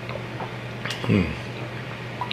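A man lets out a short sigh after drinking.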